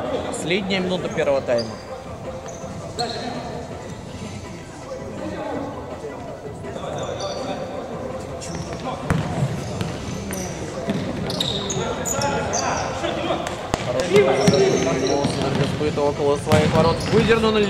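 Sneakers squeak on a hard indoor floor.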